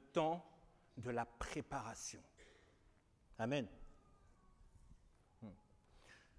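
A man speaks with animation through a microphone in an echoing hall, in short bursts with pauses.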